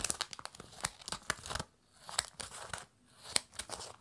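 Scissors snip through plastic.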